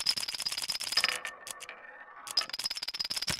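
A small ball rolls along a wooden track.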